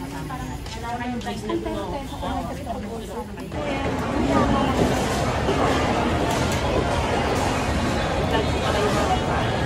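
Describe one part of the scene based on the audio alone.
Many people chatter nearby in a busy, echoing hall.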